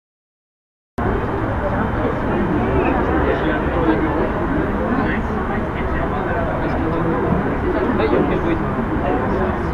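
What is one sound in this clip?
City traffic hums far below, outdoors in wind.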